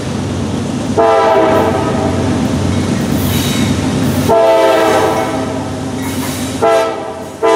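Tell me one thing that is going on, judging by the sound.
A train horn blares in long blasts.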